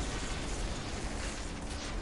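Blasts of energy crackle and boom.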